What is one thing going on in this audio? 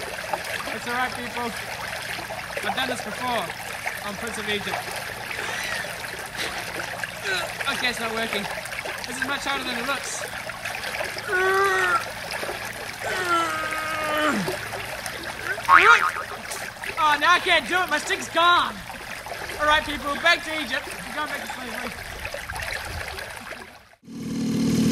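A young man talks with animation outdoors.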